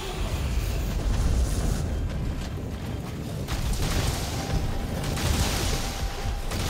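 A huge beast rumbles deeply.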